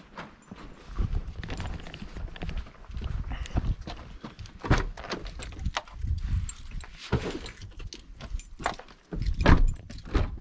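A man talks close to the microphone.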